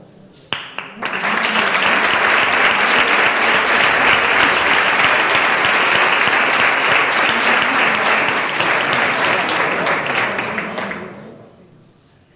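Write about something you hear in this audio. A small crowd applauds loudly.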